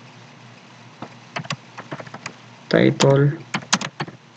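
Keyboard keys click as someone types in quick bursts.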